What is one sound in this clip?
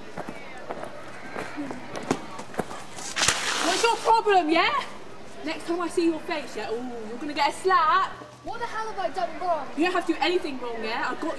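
A young woman laughs and talks excitedly outdoors.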